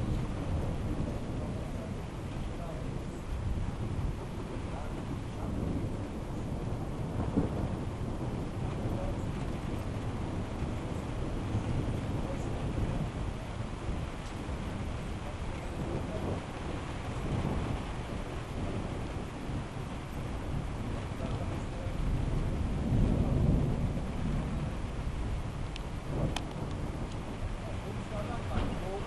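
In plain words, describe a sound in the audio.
Strong wind gusts and buffets outdoors.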